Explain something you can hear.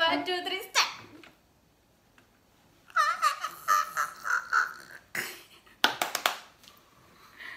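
A young woman laughs and shrieks loudly close by.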